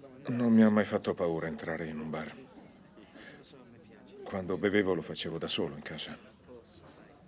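A middle-aged man speaks calmly and quietly up close.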